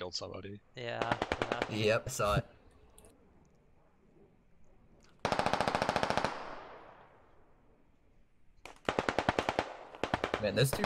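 An automatic rifle fires in rapid bursts close by.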